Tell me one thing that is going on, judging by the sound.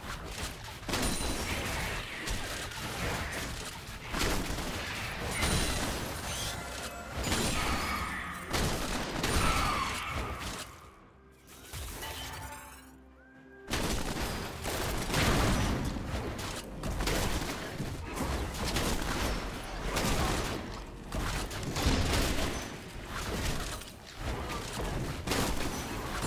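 Weapons strike with sharp hits.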